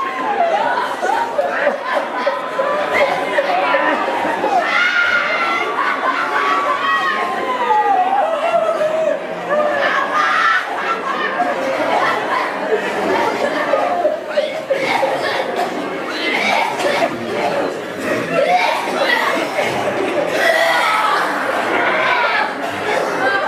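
A crowd of men and women murmur and chatter in a room.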